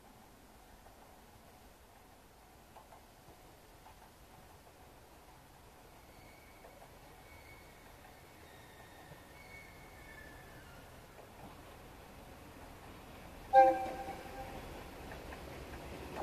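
A train approaches with a low, growing rumble.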